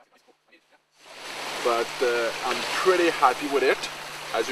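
A man talks calmly and clearly, close to the microphone.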